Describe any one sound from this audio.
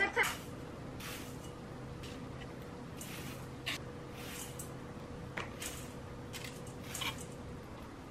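Dry oats pour and patter into a metal bowl.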